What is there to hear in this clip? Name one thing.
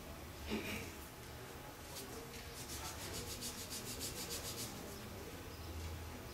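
Fingers rub and scrape lightly across wood.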